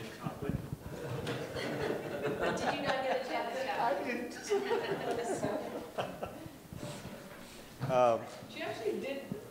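Several people laugh together.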